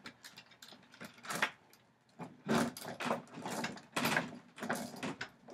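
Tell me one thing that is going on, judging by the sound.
Fists thump repeatedly against a heavy hanging bag.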